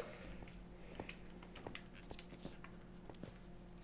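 Game footsteps tap softly on stone.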